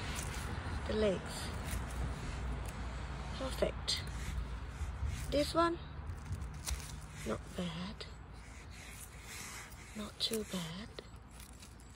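A knife slices softly through a mushroom stem.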